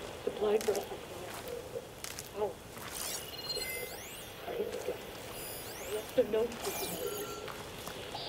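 Dry branches rustle and snap as wood is gathered.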